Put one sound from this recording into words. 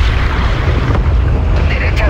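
An explosion booms underwater.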